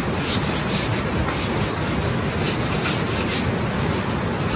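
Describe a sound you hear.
Metal tongs scrape and clink against charcoal on a grill.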